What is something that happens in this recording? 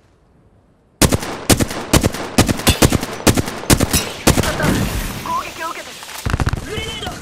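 Rapid gunshots ring out in quick bursts.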